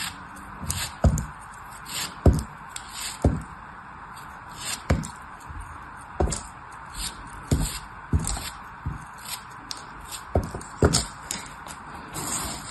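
Chunks of sand crumble and drop with soft thuds.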